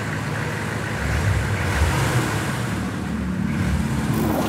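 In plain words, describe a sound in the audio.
An off-road vehicle's engine rumbles as it drives slowly closer.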